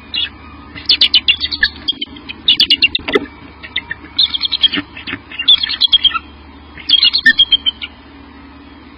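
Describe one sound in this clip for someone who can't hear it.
An eagle gives a series of high, piping chirps close by.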